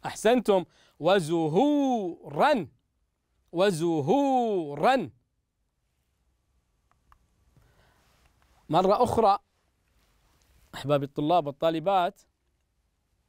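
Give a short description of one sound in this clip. A young man speaks calmly and clearly into a microphone, reading out in short phrases.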